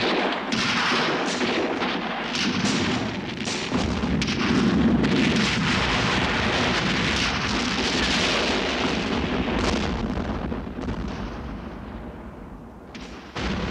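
A huge explosion booms and rumbles away.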